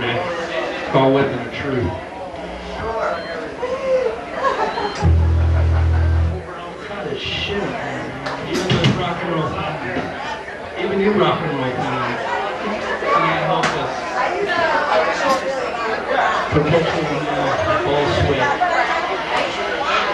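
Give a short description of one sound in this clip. A man sings and shouts into a microphone through loudspeakers.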